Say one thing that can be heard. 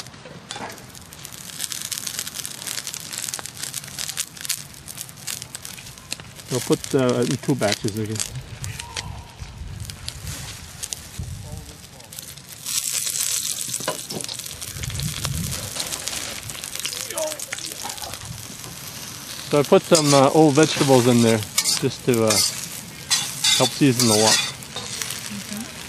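Vegetables sizzle in a hot pan.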